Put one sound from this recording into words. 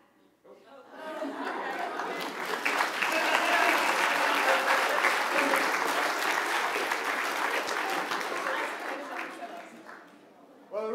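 A congregation applauds in a large hall.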